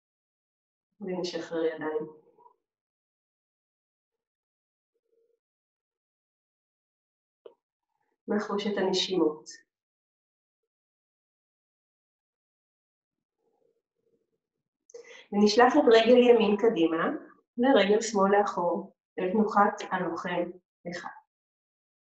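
A woman speaks calmly and slowly, close by, with pauses.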